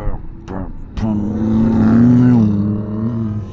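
A motorcycle engine revs and pulls away loudly.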